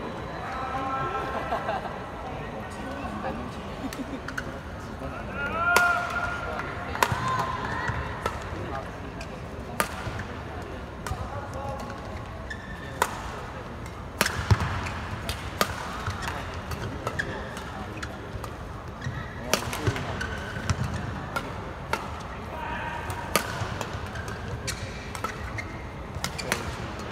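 Shoes squeak sharply on the court floor.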